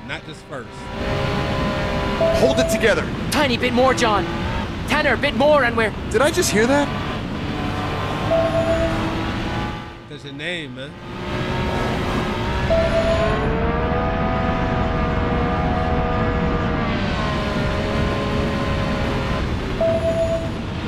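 A racing car engine roars and its pitch rises and falls as it speeds up and shifts gears.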